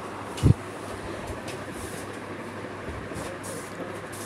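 A young child thumps and scrambles on a soft bed.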